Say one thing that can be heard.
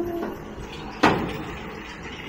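A baler's rear gate slams shut with a loud metallic bang.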